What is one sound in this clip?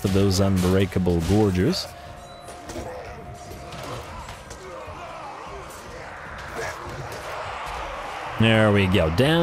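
Weapons clash and clatter in a battle.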